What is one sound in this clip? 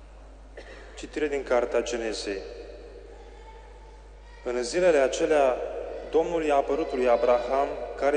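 A young man reads out through a microphone in a large echoing hall.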